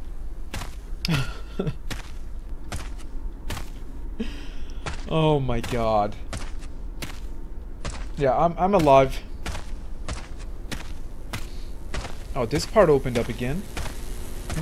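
A young man speaks with animation close to a microphone.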